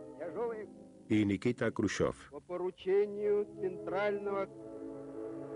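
A man speaks forcefully into microphones, heard through loudspeakers.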